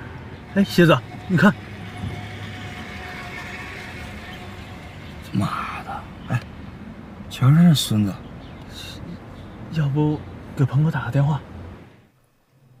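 Two young men talk with each other.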